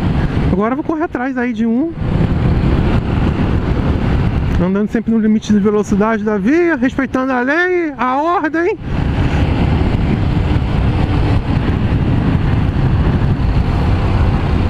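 A motorcycle engine hums and revs up and down as it rides.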